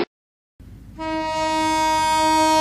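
A train horn blares loudly and steadily.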